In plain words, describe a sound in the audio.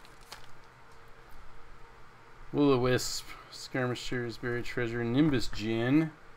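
Playing cards slide and rustle between hands.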